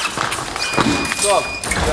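Fencing blades clash and click.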